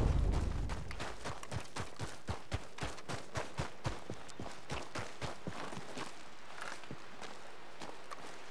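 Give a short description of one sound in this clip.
Footsteps crunch steadily over grass and stones.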